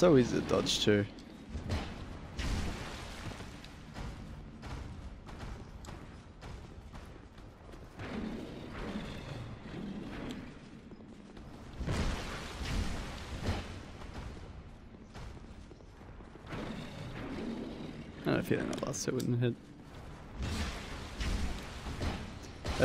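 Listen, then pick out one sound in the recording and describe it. Heavy blows land with dull thuds.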